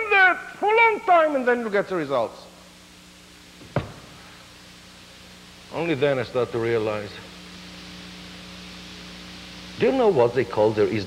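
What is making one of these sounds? A man speaks with animation through a clip-on microphone.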